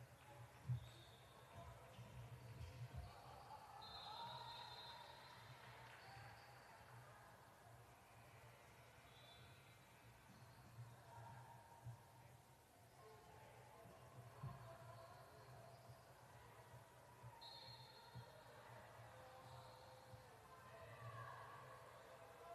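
Players and spectators call out, echoing in a large gym.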